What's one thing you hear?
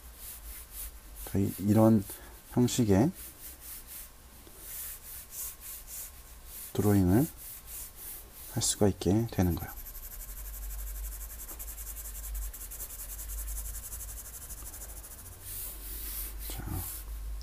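A pen scratches quickly across paper in short strokes.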